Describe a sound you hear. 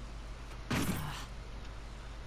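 A young woman grunts in frustration.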